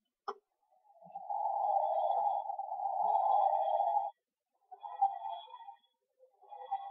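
A toy gives off a wavering electronic whirring sound.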